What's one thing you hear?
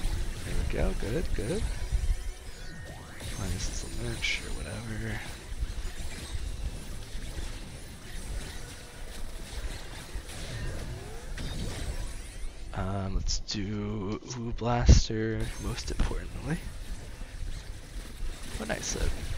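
Game spell effects whoosh, zap and burst in quick succession.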